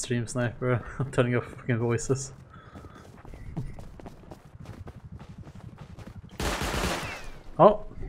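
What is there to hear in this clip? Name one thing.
Footsteps tap on hard ground at a steady walking pace.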